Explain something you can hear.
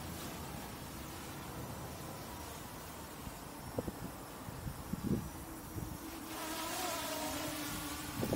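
Wind rumbles across an open outdoor space.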